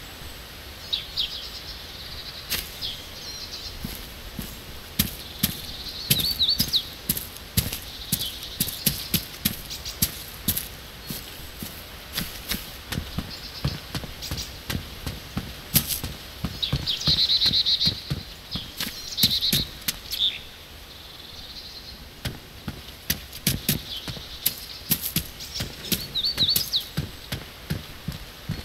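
Footsteps tread steadily over grass and pavement.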